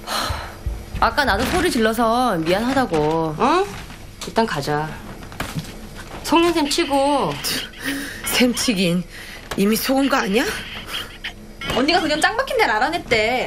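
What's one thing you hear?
A young woman speaks loudly and with animation nearby.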